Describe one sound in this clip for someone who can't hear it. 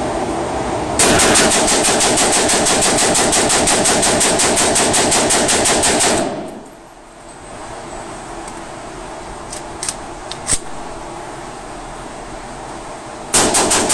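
An automatic rifle fires fully automatic bursts, echoing indoors.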